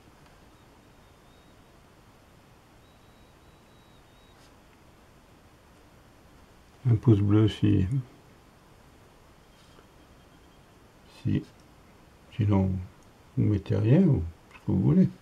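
A brush strokes softly across paper.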